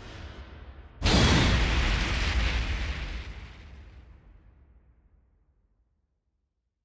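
A fiery blast booms and roars, then slowly fades away.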